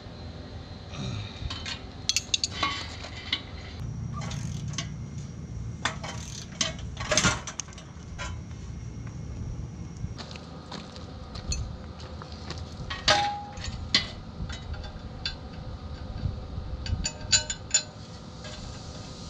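Metal tools clink and knock against a metal frame.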